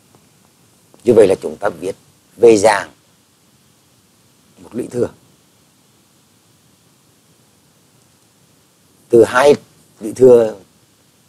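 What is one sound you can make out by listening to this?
A man speaks calmly through a microphone, in short phrases with pauses.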